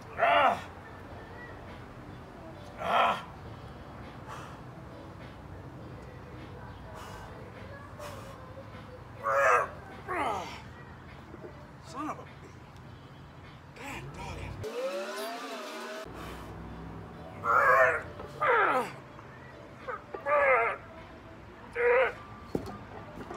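A man grunts and shouts loudly with effort, close by.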